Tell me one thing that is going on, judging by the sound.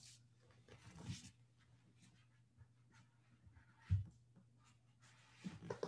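Foam blocks thud softly on a mat.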